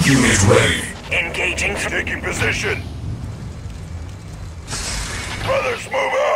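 Laser guns fire in short bursts.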